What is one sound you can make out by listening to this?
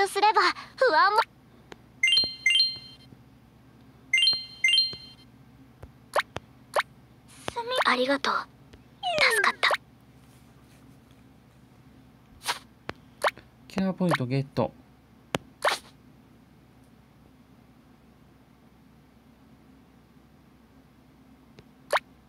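Bright electronic chimes and short clicks sound as menu buttons are tapped.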